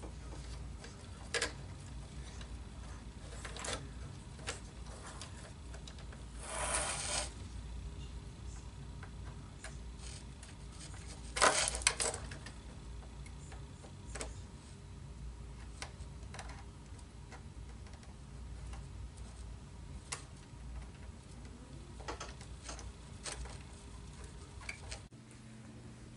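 Small metal parts click and tap softly as they are fitted together by hand.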